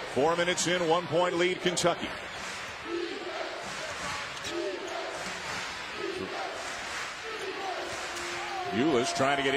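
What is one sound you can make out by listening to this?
A large indoor crowd murmurs in an echoing arena.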